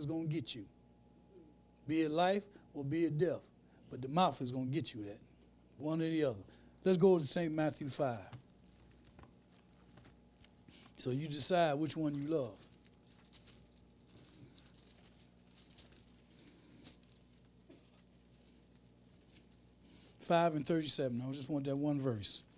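A man speaks with emphasis into a microphone, pausing often.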